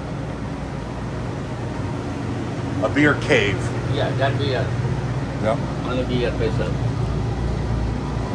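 Refrigeration fans hum steadily.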